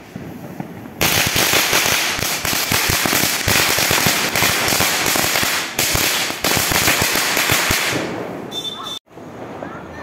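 A firework fountain roars and crackles loudly close by.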